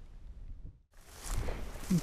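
Dry reeds rustle as hands brush through them.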